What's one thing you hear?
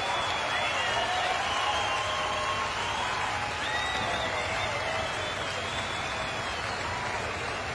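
Members of a large crowd whistle shrilly.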